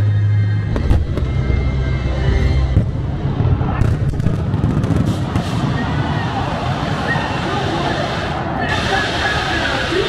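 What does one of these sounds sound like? Fireworks crackle and bang overhead.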